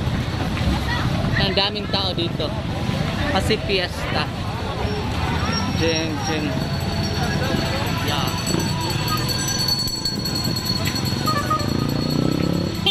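Motorcycle engines rumble along a road.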